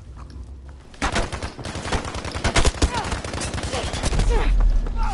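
Gunfire cracks in rapid shots.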